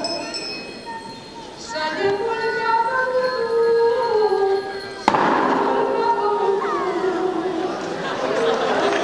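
A choir of women and girls sings together through microphones in a large hall.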